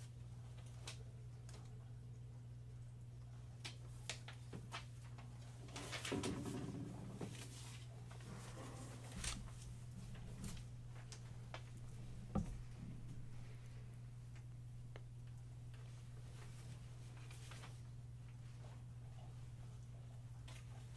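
Paper rustles and pages turn.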